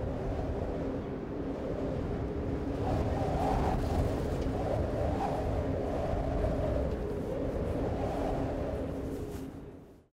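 Wind blows steadily across open snow.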